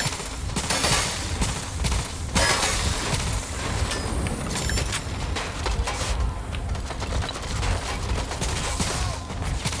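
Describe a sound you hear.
Single gunshots crack.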